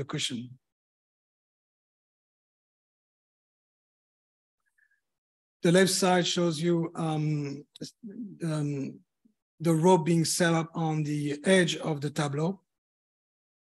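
An elderly man talks calmly over an online call.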